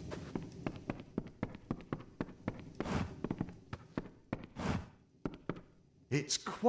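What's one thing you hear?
Footsteps thud quickly across a wooden floor.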